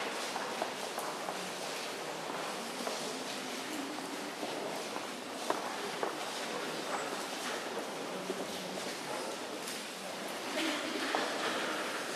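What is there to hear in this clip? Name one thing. A man speaks softly and briefly, again and again, in a large echoing hall.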